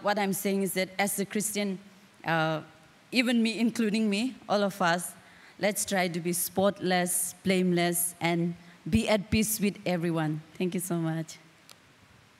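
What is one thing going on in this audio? A young woman speaks calmly into a microphone, heard through a loudspeaker.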